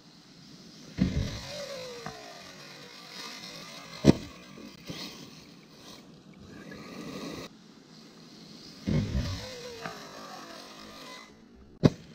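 A small remote-control car's electric motor whines as it speeds past.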